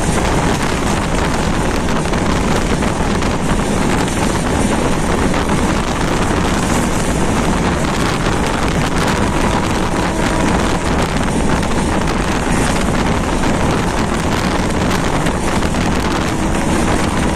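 Wind buffets loudly, as if heard from an open train window.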